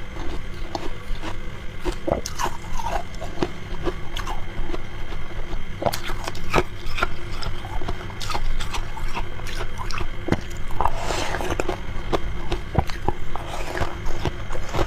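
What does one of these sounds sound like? A young woman crunches ice close up.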